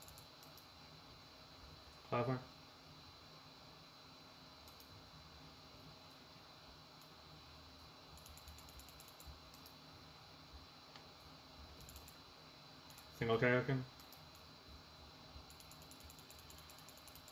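Keyboard keys click softly and rapidly.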